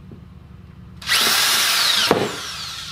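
A cordless drill whirs loudly, driving a screw into wood.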